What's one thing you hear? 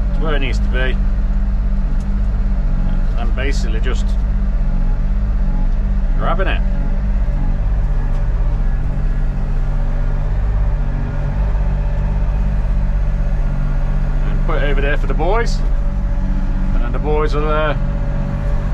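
A digger's hydraulics whine in short rising and falling bursts.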